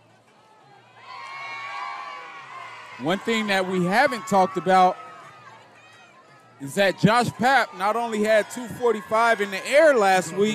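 A crowd cheers and shouts from the stands outdoors.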